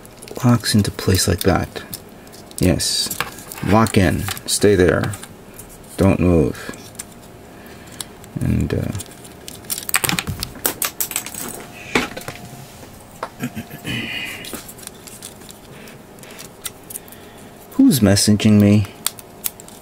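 Plastic model kit parts click and snap as they are fitted together by hand.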